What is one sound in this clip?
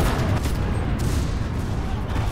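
A rifle fires a sharp shot close by.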